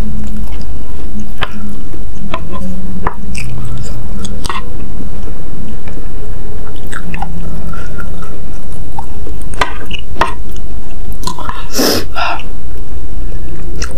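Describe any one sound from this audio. A young woman slurps and chews noodles wetly.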